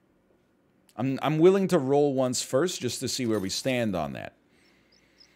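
A man speaks briefly and animatedly into a close microphone.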